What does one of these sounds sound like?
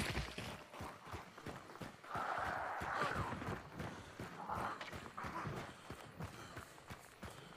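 Footsteps crunch steadily over dirt and grass.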